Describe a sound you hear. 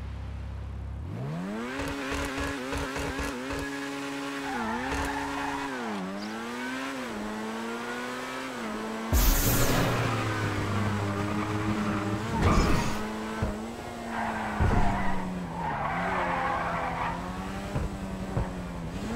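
A sports car engine roars and revs as it speeds up.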